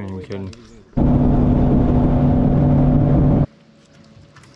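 A boat motor roars steadily, then cuts off.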